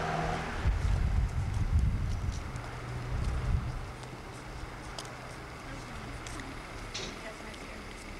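Footsteps walk on a paved path.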